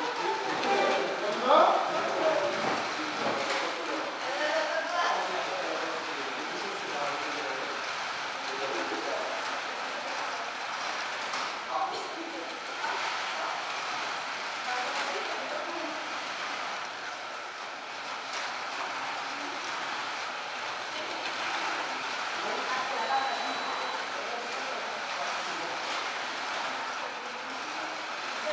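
A crowd of children and adults chatters in a large echoing room.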